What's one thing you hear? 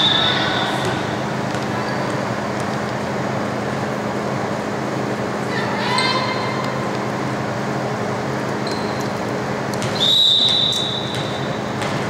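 A referee's whistle blows in an echoing gym.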